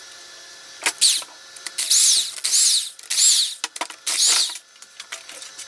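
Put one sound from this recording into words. A power wrench whirs in short, loud bursts.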